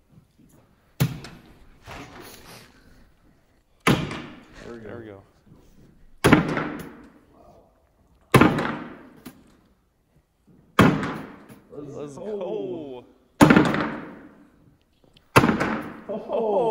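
Bean bags thud loudly onto a wooden board, one after another.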